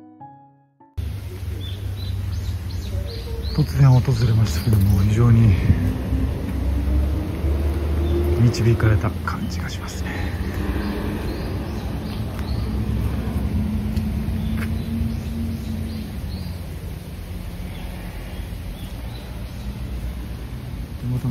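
Wind rustles through tree leaves outdoors.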